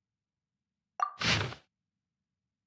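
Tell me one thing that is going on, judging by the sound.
A game interface plays a short whooshing chime.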